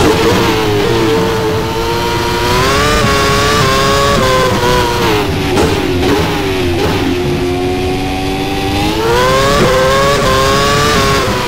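A racing car engine screams at high revs, its pitch rising and dropping as it shifts gears.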